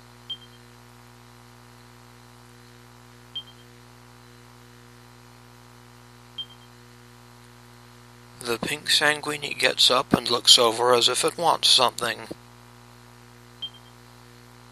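A short electronic blip sounds as game text advances.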